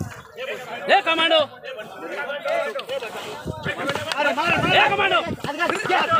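A crowd of men shouts and cheers excitedly outdoors.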